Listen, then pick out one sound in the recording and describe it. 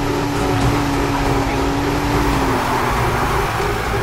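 Tyres screech as a car drifts through a corner.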